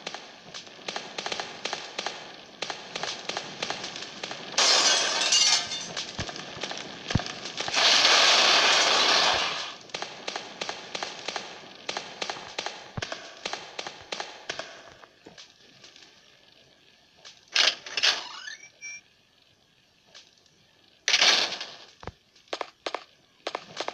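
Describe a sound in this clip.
Footsteps thud quickly and steadily on stairs.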